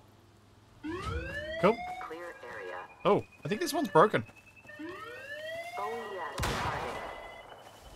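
A gun fires several shots.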